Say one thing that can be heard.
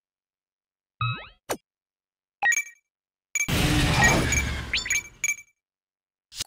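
Short electronic menu beeps chime.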